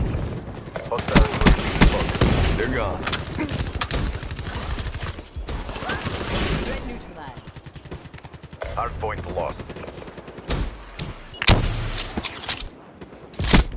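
Rapid gunfire cracks and rattles close by.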